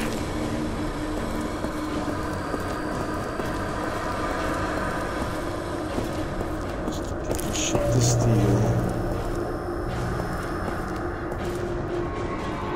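A low machine hum drones steadily in a large echoing space.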